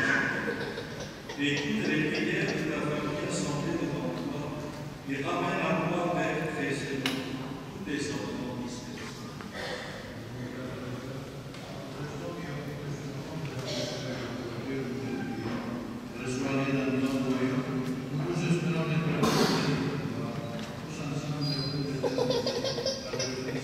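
Several men pray aloud together in a resonant hall.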